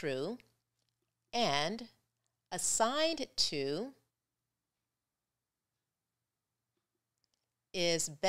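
A woman speaks calmly and clearly into a close microphone, in short phrases.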